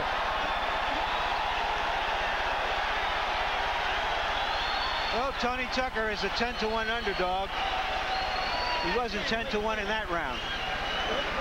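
A large crowd cheers and roars loudly in a big arena.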